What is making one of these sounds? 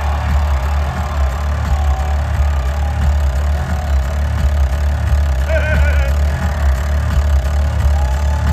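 Drums and bass pound heavily.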